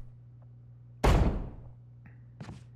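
A heavy wooden door slams shut with a deep boom.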